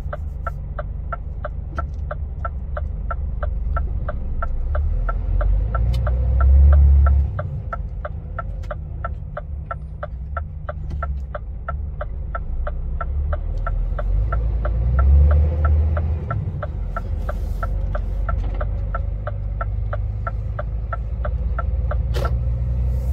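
A turn signal ticks rapidly and evenly.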